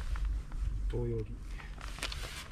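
A man speaks briefly close by.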